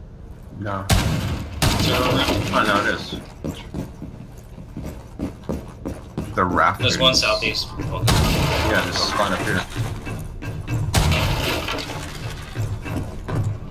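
Gunshots fire in short, loud bursts.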